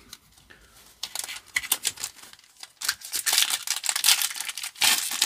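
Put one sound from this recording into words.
A foil wrapper crinkles and tears between fingers.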